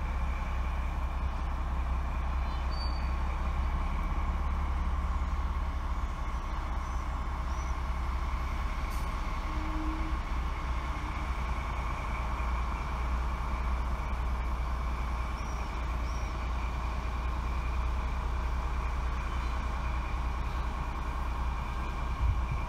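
A diesel locomotive rumbles steadily as a freight train approaches slowly from a distance.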